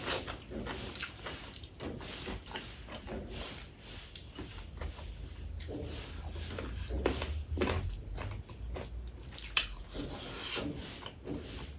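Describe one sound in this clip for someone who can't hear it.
Fingers squish and mix soft rice close by.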